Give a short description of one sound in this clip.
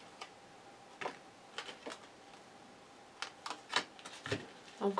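A card taps softly onto a table.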